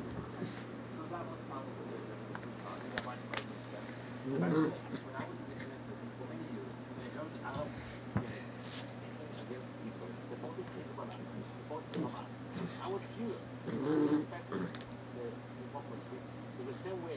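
A puppy drags and tugs a fabric pet bed across carpet.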